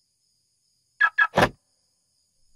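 A phone beeps sharply a few times.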